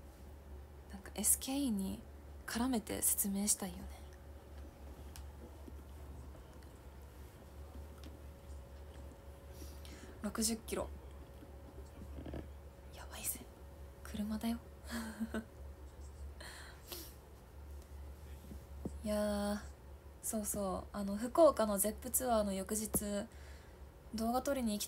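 A young woman talks calmly and close by, with pauses.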